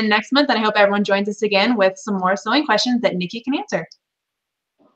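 A young woman talks cheerfully into a microphone over an online call.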